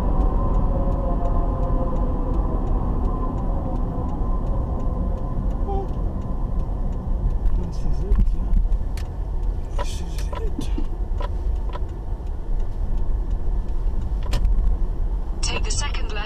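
A car engine hums steadily from inside the car as it drives and slows down.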